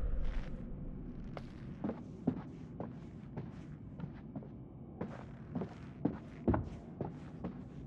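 Footsteps tread slowly across a floor.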